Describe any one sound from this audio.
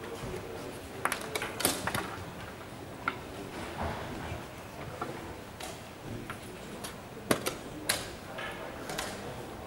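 Chess pieces click and tap on boards in a large echoing hall.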